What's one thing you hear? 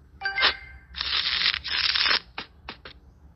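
Playing cards riffle in a quick shuffle.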